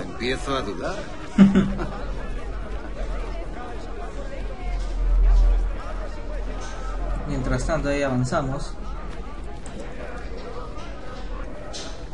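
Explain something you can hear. Footsteps walk steadily on stone paving.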